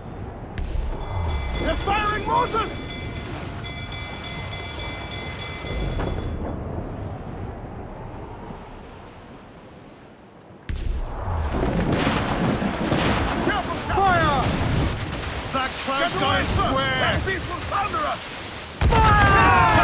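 Rough sea waves crash and roar around a sailing ship.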